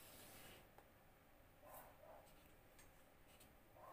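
A marker squeaks softly as it draws a line along a ruler on paper.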